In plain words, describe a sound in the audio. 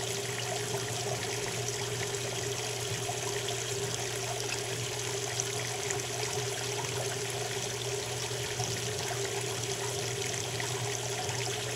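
Water sprays and splashes steadily onto wet laundry.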